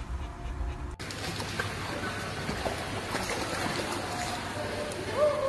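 Water splashes and laps.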